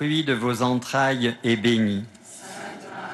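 An elderly man sings a chant into a microphone.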